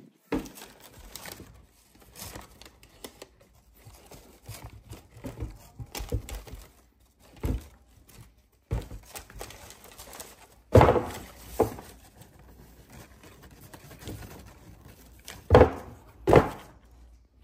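Tissue paper rustles and crinkles.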